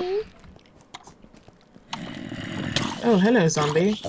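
A zombie groans low and wavering.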